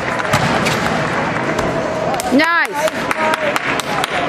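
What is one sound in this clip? A gymnast lands with a thud on a mat.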